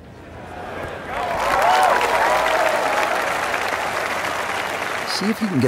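A crowd cheers and applauds loudly.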